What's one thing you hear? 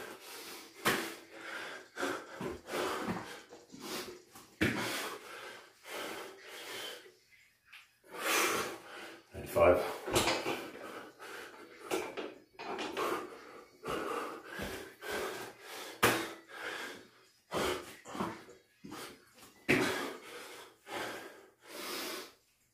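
Bare feet thump on a floor mat.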